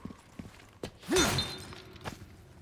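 A heavy blow strikes with a loud thud.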